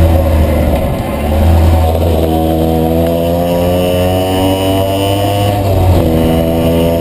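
A motorcycle engine drops in pitch as gears shift, then revs up again.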